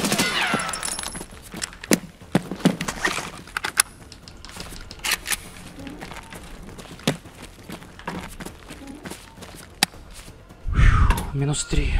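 Footsteps fall on a hard floor.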